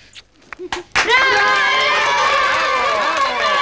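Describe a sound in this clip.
A group of children cheer and shout excitedly.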